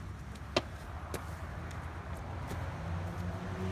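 A small child runs across grass.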